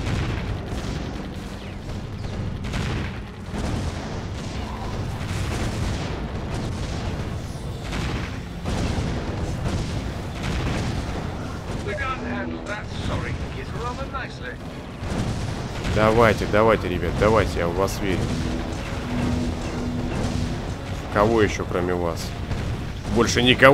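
Explosions boom and rumble over and over.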